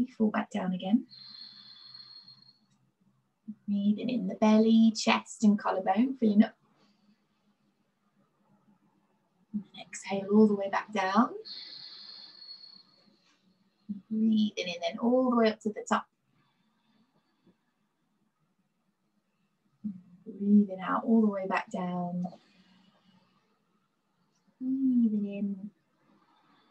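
A young woman speaks calmly and slowly, close to a microphone, in short phrases with long pauses.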